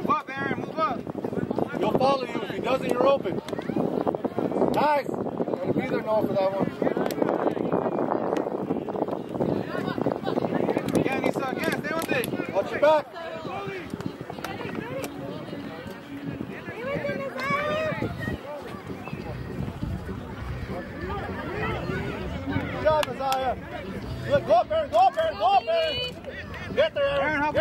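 A crowd of adults shouts and cheers outdoors.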